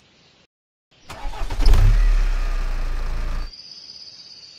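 A truck engine roars loudly, then cuts off.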